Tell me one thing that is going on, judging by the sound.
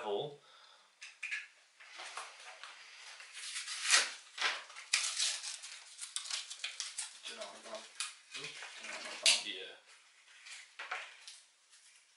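Glass doors rattle and click as they are handled.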